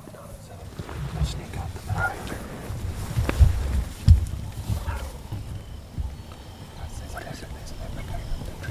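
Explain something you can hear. Dry grass rustles and crackles as men shift close by.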